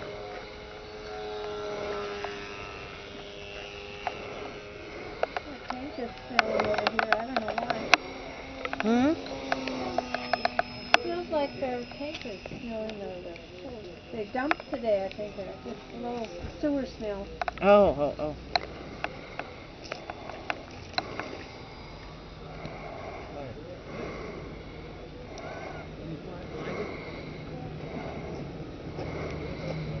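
A small propeller plane's engine drones overhead, rising and falling in pitch.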